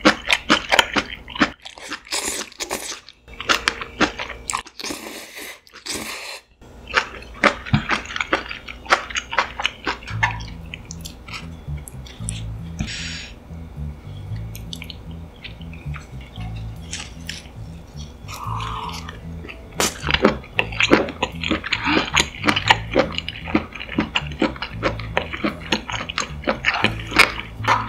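A young woman chews food with wet smacking sounds, close by.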